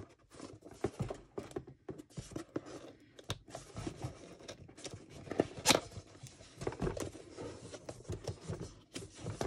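Cardboard packaging rustles and scrapes as hands handle a box.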